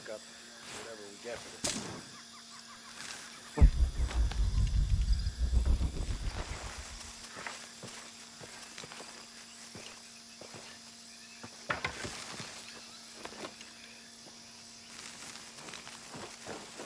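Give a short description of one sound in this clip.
Footsteps crunch through undergrowth.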